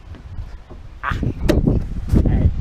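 Two hands slap together in a high five.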